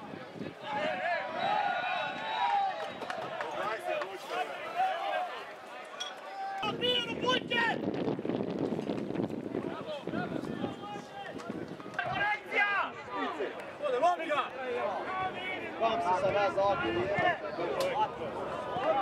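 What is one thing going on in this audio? A crowd of spectators murmurs and calls out in the distance outdoors.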